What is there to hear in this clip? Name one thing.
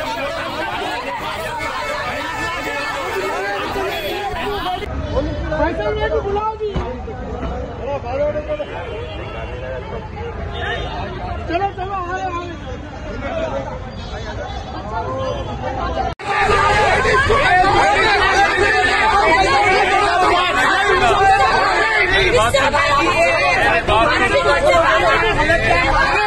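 A crowd of men talk and shout over one another close by.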